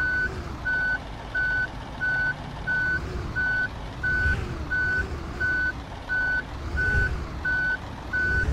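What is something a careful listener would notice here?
A reversing alarm beeps at an even, quick pace.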